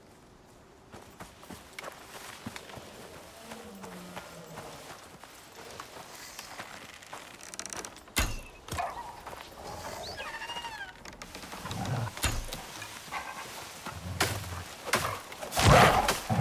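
Footsteps rustle through dense undergrowth.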